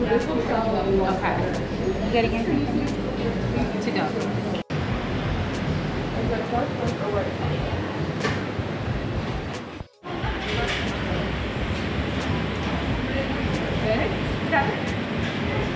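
Men and women chat nearby in a busy, echoing room.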